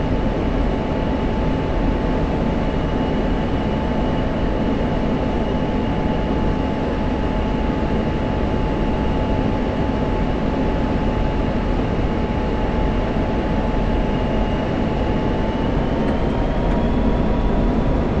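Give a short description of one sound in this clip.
A jet engine roars steadily with a high whine that rises slightly near the end.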